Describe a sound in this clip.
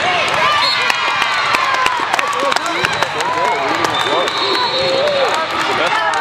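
Young women cheer and shout excitedly in a large echoing hall.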